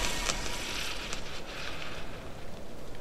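Bullets strike and spark against a wooden fence.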